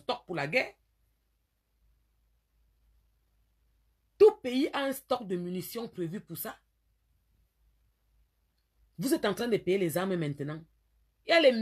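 A woman talks with animation, close to the microphone, in bursts with pauses.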